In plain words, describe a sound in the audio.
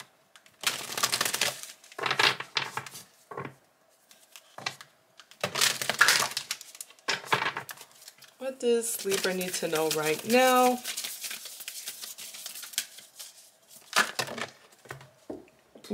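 Playing cards are shuffled and riffled by hand.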